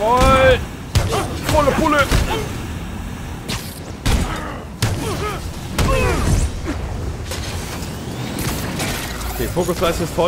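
Electric blasts crack and boom in a fight.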